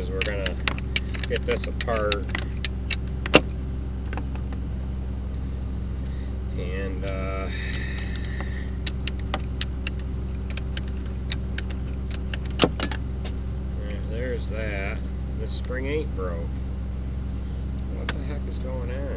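Metal tools clink and click against a machine part.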